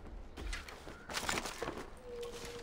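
A plant is plucked with a quick rustle.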